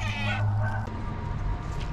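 A cat crunches dry food.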